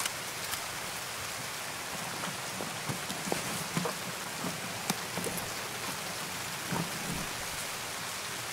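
Gear rustles and clicks as items are moved about.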